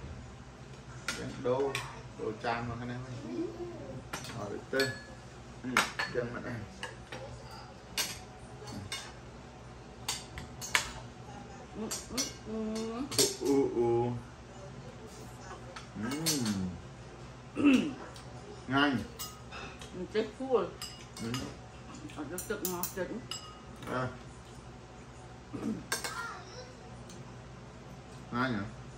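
Spoons and forks clink against plates.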